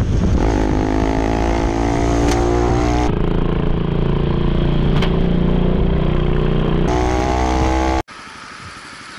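A motorcycle engine roars close by, rising and falling in pitch as it revs.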